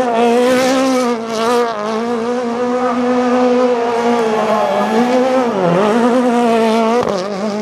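Tyres squeal as a car spins on the road.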